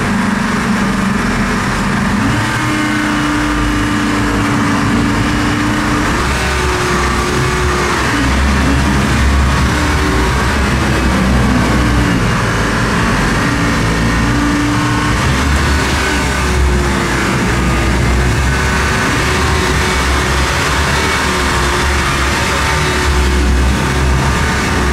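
A boat engine drones loudly and its pitch rises and falls as it revs.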